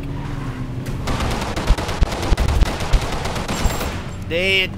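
Rapid gunfire bursts out in quick shots.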